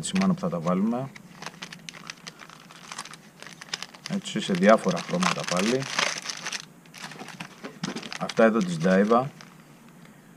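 Plastic packets crinkle and rustle as they are handled.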